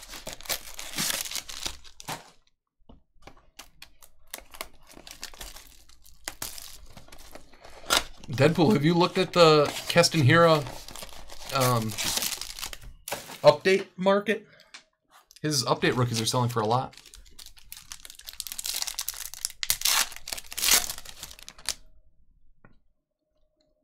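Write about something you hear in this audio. Foil card packs crinkle and rustle in hands.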